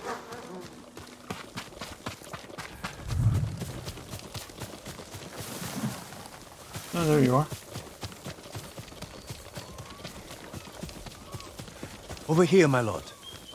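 Footsteps run and rustle through tall grass.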